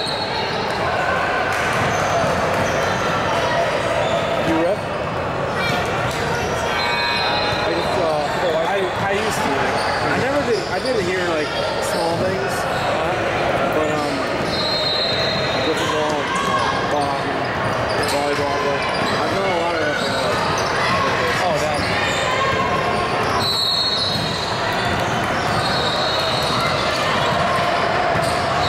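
Players call out to each other, echoing in a large hall.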